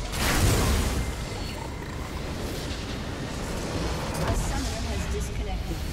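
Magic blasts and weapon clashes burst out in a hectic battle in a video game.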